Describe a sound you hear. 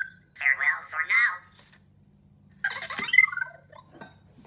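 A small toy robot chirps and warbles with electronic beeps.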